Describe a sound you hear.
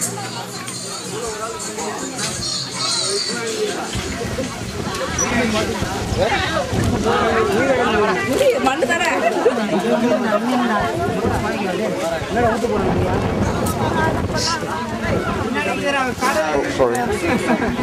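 A crowd of men talks and chatters loudly all around, outdoors.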